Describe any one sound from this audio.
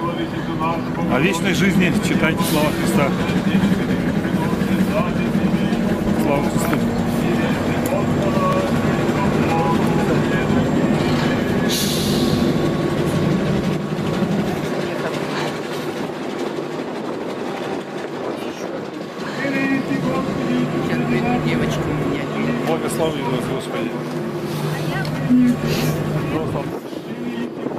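A crowd of people talks nearby outdoors.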